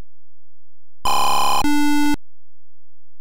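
A harsh electronic buzz and tone blare.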